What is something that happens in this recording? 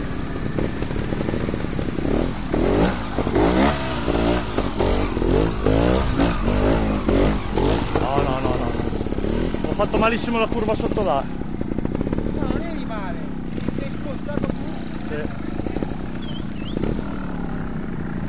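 A dirt bike engine revs hard and rises and falls in pitch, then idles.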